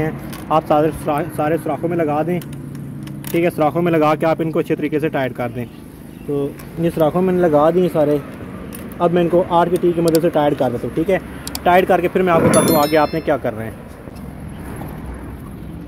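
Metal tools clink against a motorcycle engine.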